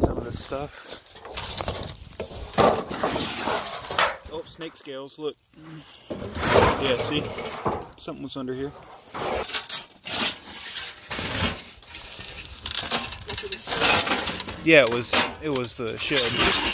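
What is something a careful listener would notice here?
Sheet metal scrapes and rattles as it is lifted off the ground.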